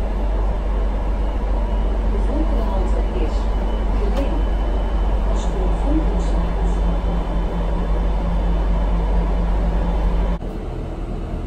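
A bus engine rumbles steadily inside a moving bus.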